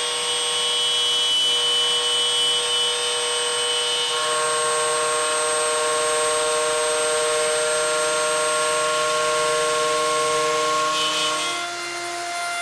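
A router bit cuts through wood with a rushing hiss.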